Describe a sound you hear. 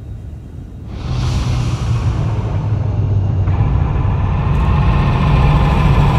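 A spaceship engine rumbles loudly and swells.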